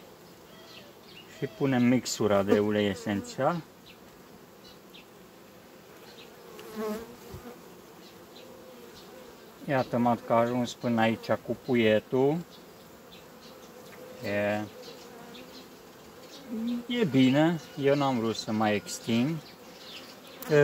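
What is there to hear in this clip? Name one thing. Bees buzz softly around an open hive.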